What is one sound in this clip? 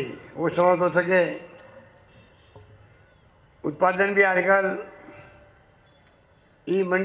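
A man speaks forcefully into a microphone over loudspeakers, in bursts with pauses.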